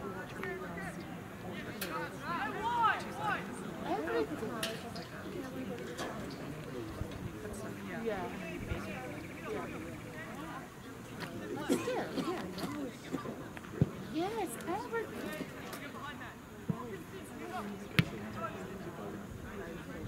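Women and men nearby chat with animation outdoors.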